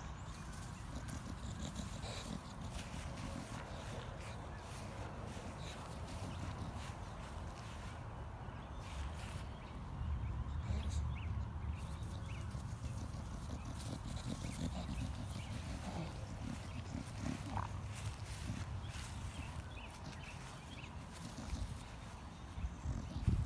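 A dog sniffs at the grass.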